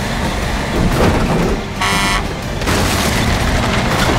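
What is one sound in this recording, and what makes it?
Wooden boards smash and splinter.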